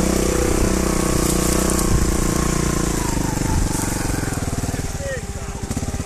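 A motorcycle engine revs loudly nearby.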